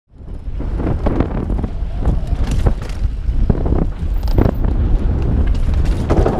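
A mountain bike's frame and chain rattle over bumps.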